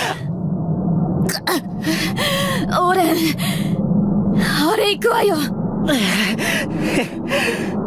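A man speaks in a pained, strained voice.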